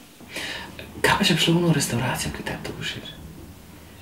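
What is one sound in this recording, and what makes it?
A young man speaks calmly and softly nearby.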